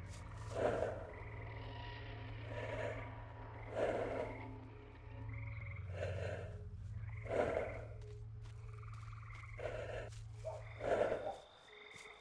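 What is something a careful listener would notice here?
Footsteps fall at a walking pace.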